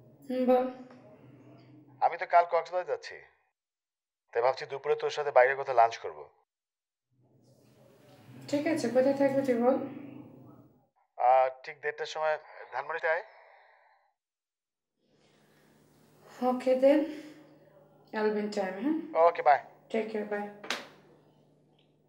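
A young woman talks calmly on the phone, close by.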